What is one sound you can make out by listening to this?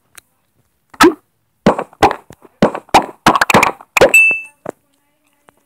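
Quick small pops sound one after another.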